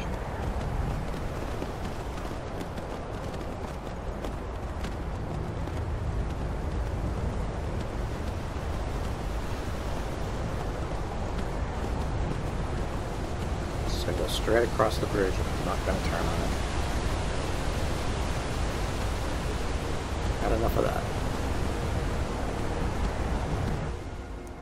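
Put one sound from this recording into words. A horse's hooves thud softly through snow.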